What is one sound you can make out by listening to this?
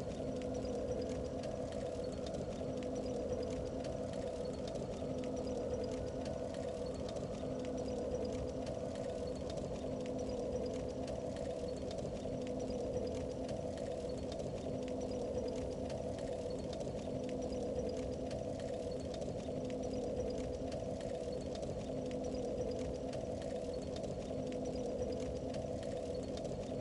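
A low magical hum drones steadily from a shimmering barrier.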